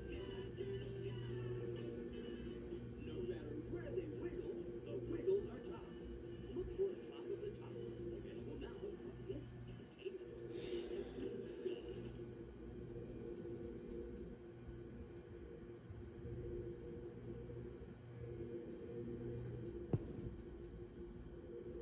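Music plays through a television's speakers.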